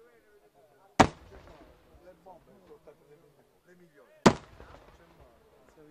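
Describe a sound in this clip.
Firework shells burst with loud, sharp booms that echo away.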